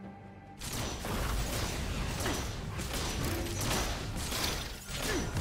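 Video game spells and weapons crackle and clash in a fast fight.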